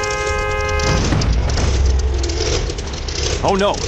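A car crashes with a heavy crunch of metal.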